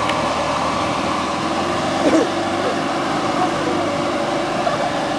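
An off-road jeep's engine labours as it climbs a steep dirt slope.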